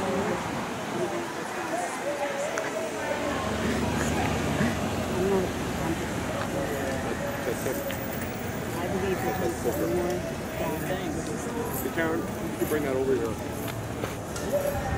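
A crowd of men and women chants and shouts in the distance outdoors.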